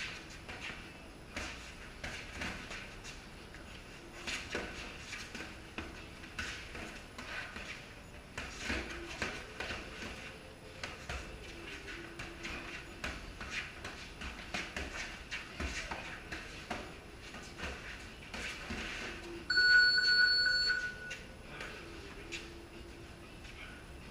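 Sneakers shuffle and squeak on a concrete floor.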